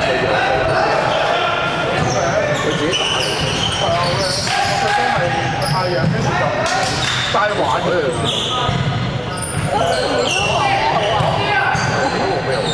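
Sneakers squeak sharply on a court in a large echoing hall.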